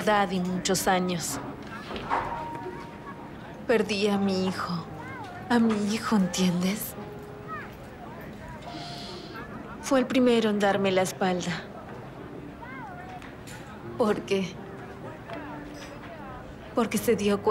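A woman speaks quietly and emotionally, close by.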